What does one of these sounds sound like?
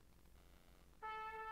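A choir begins to sing together.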